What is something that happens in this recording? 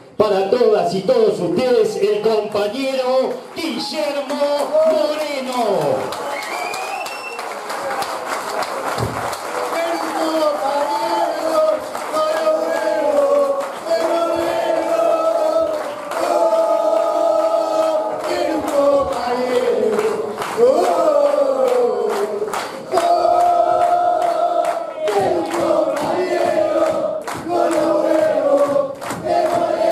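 A large crowd sings and chants together in an echoing hall.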